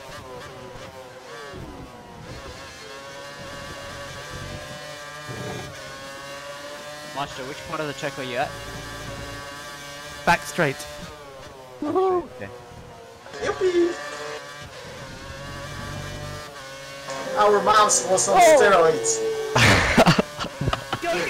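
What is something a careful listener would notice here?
A racing car engine whines steadily, rising and falling in pitch as gears change.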